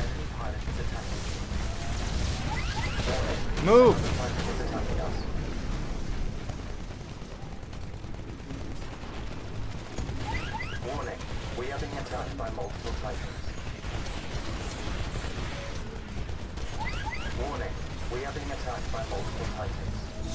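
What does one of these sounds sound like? Heavy guns fire in rapid bursts with deep rumbling booms.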